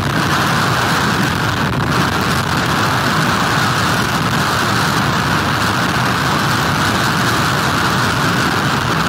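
Rough waves crash and churn.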